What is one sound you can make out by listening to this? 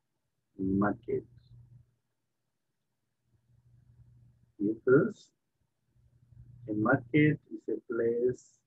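A man speaks calmly through a computer microphone, in short bursts with pauses.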